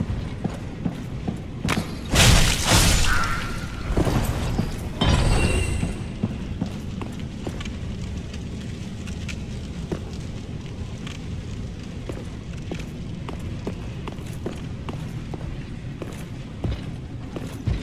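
Armored footsteps clank steadily on stone.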